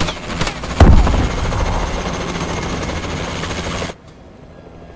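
A loud explosion booms and crackles.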